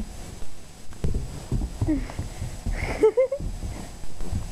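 A puppy scampers across a carpet.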